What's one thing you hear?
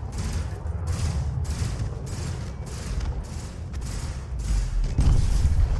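Laser cannons fire in rapid, pulsing bursts.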